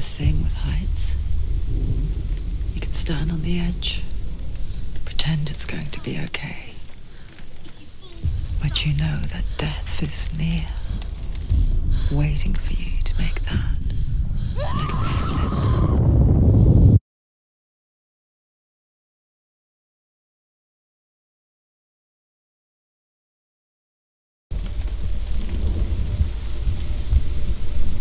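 Wind roars steadily outdoors.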